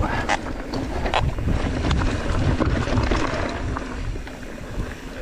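A bike's frame and chain clatter over bumps.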